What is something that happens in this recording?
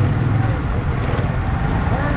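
A motorbike engine idles nearby.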